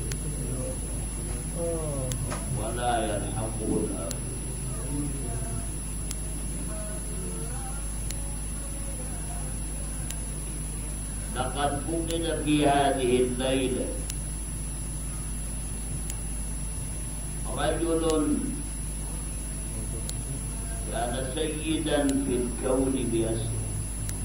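An elderly man preaches with emotion into a microphone, in bursts with pauses.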